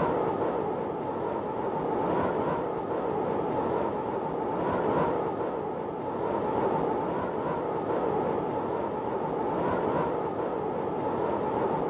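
Wind roars in a swirling whirlwind.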